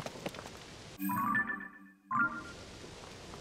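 A menu chime rings with short bright tones.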